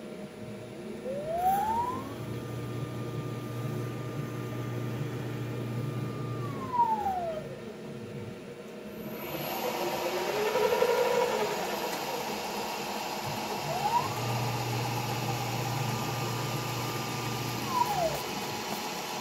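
A machine spindle whines as it spins up, runs steadily and winds down.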